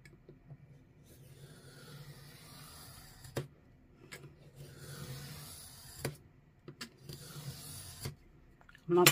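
A craft knife scrapes and scores along paper against a metal ruler.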